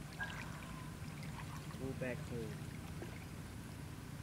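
Water sloshes as a child wades through a pond.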